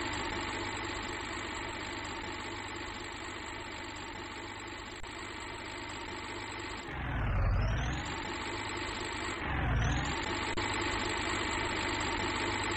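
A heavy diesel truck engine drones.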